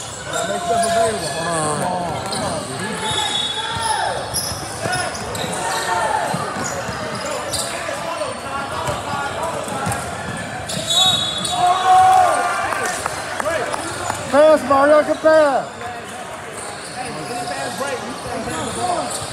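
Spectators talk and shout in a large echoing gym.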